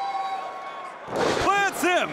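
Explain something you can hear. A wrestler's body slams down hard onto a ring mat.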